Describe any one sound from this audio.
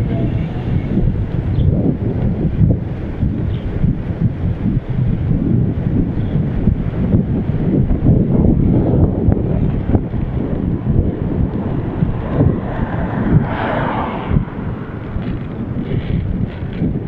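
Wind rushes loudly past a moving bicycle outdoors.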